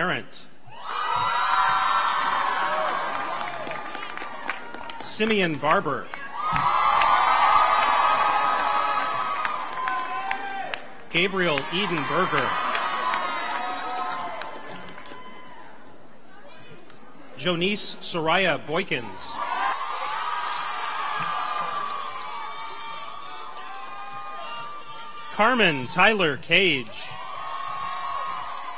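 An audience cheers loudly.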